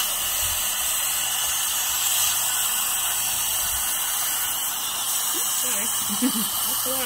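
A dental suction tube hisses steadily.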